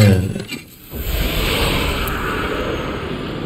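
Magic sparks shimmer and hiss.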